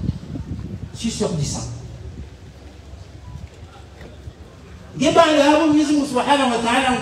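A man speaks loudly through a microphone and loudspeakers outdoors, chanting in a sung, drawn-out way.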